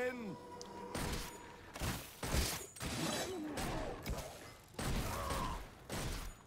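Weapon blows and magic blasts crack in quick bursts.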